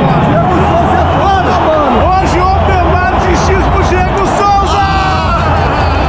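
A young man shouts and laughs with excitement close by.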